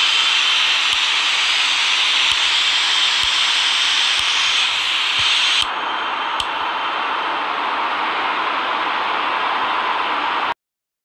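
Jet engines roar steadily, then sound more muffled.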